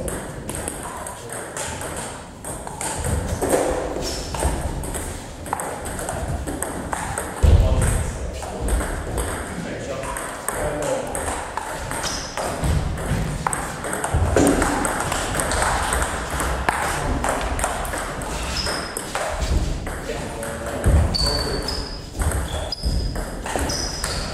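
Men talk in a large echoing hall.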